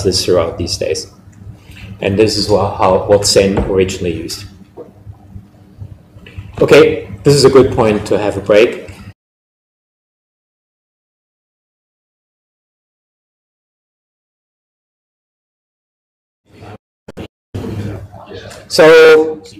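An older man lectures calmly through a microphone in an echoing hall.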